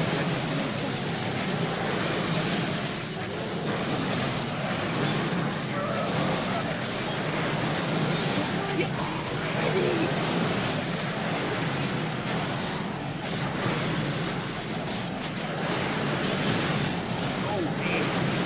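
Game combat sounds clash and crackle with spell effects.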